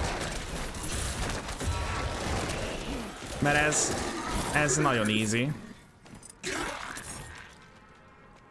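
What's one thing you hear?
Game combat effects clash and crackle loudly.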